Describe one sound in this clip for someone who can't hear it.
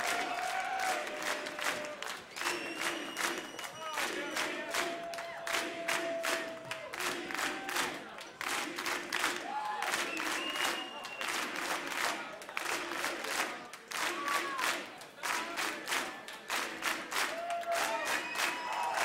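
A large crowd claps and applauds loudly.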